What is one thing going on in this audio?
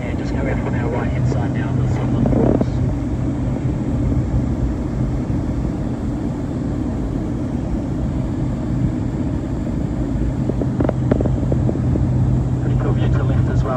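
The engine of a light propeller plane drones steadily, heard from inside the cabin.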